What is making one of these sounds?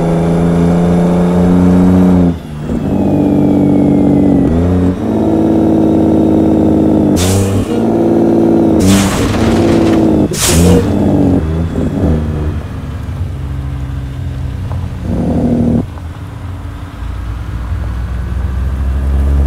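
A truck engine drones loudly, its pitch shifting as the truck changes gear.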